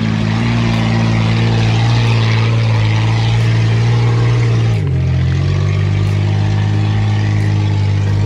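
An off-road vehicle's engine roars loudly and shifts pitch as it climbs.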